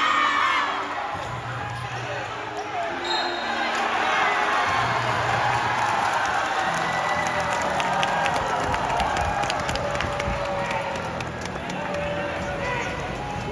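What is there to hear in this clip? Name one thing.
A crowd cheers and chatters loudly in a large echoing hall.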